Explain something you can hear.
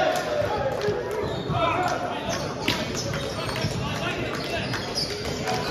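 Players call out and chatter in a large echoing hall.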